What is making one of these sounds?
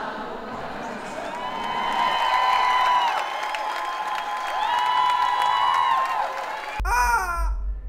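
A large crowd claps and cheers.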